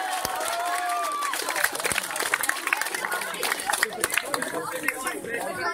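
A crowd applauds and claps.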